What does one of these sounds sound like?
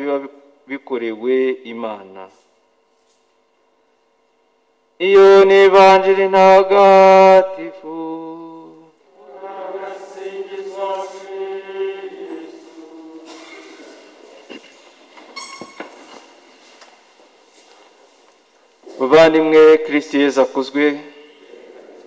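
A man chants in a singing voice through a microphone in an echoing hall.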